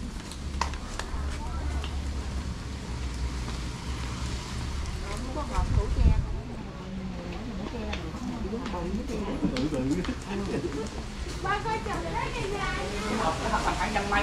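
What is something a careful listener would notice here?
Footsteps tap on a wooden deck.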